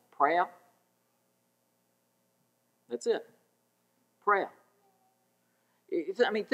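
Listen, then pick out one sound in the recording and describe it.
A man speaks calmly in short phrases with long pauses, heard through a microphone.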